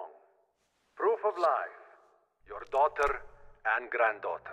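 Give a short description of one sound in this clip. A man speaks calmly and low.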